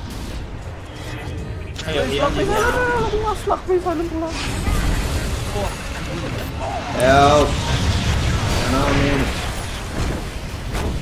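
Magic spells blast and crackle in a fantasy battle.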